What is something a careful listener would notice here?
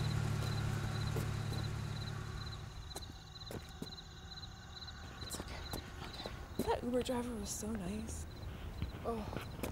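Footsteps walk on pavement.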